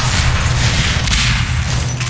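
An energy weapon crackles with electric zaps.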